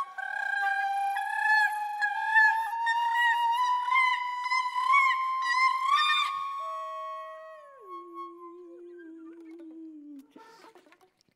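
A woman sings a high, sustained melody into a microphone.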